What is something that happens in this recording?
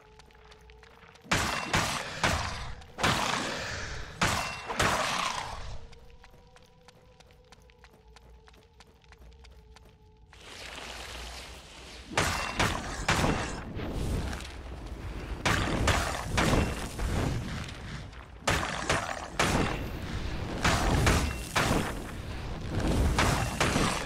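Magic blasts and weapon strikes crash in a fierce fight.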